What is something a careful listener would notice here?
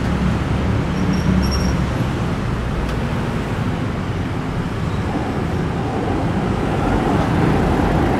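Motorbike engines hum past on the street.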